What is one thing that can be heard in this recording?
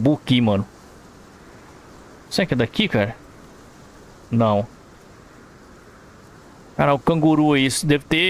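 A man talks in short bursts close to a microphone.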